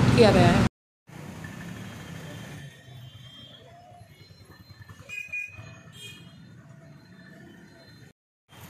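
Motorbikes and scooters ride past on a street.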